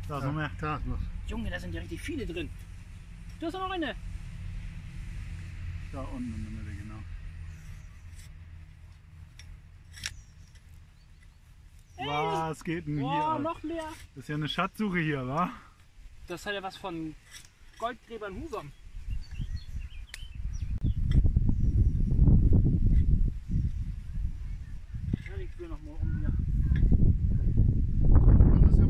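A garden fork digs into soil and roots tear.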